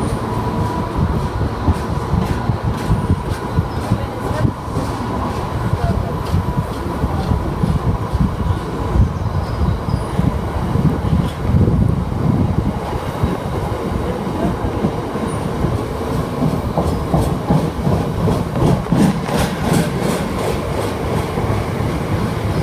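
A heavy freight train rumbles past close by.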